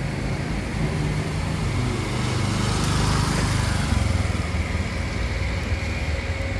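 A motorbike engine hums as a scooter rides past close by.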